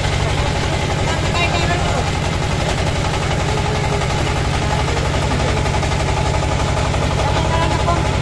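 Water splashes and rushes past a moving boat.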